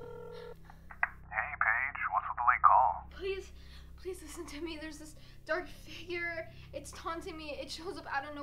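A young woman speaks quietly and close by.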